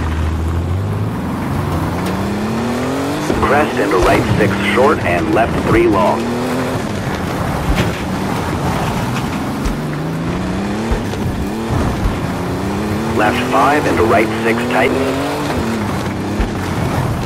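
Gravel crunches and sprays under spinning tyres.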